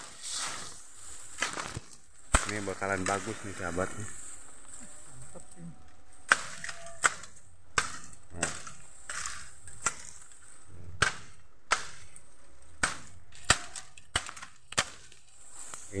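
Bamboo stalks knock and leaves rustle as someone pushes through dense growth nearby.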